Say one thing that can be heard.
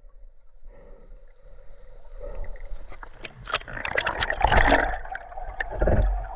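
Water rushes and bubbles close by, heard through the water.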